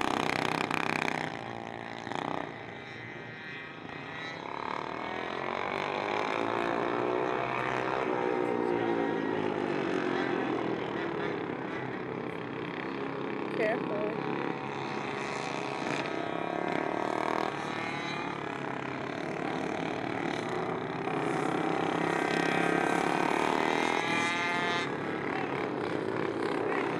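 Small motorbike engines buzz and whine, rising and falling in pitch as they race past.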